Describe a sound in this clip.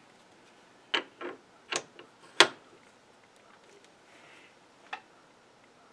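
Metal parts click and knock close by.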